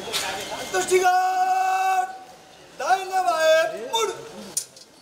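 A crowd of men shouts loudly in unison outdoors.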